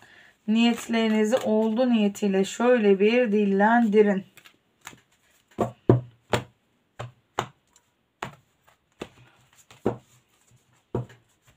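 Playing cards riffle and tap together as a deck is shuffled.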